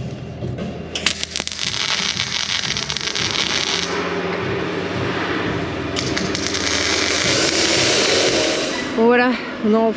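An arc welder crackles and buzzes steadily.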